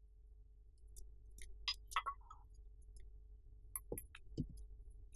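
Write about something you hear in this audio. Dishes clink at a sink.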